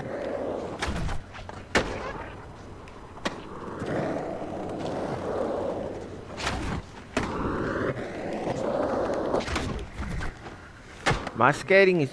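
A skateboard clacks sharply as it lands.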